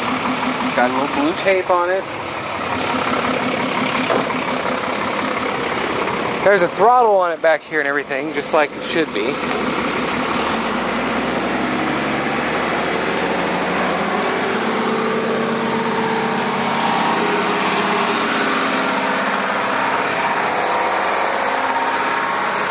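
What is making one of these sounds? A large truck engine idles steadily.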